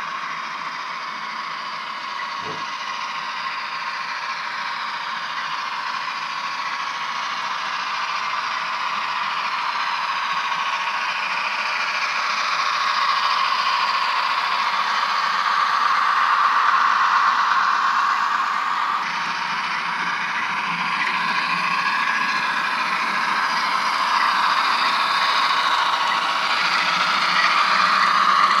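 A model locomotive's motor whines steadily.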